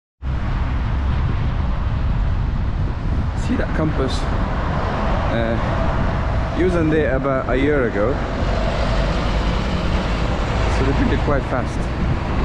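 Cars drive past on a road nearby.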